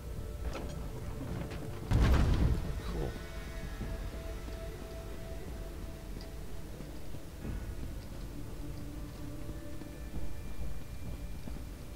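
Footsteps run across a stone floor in a large echoing hall.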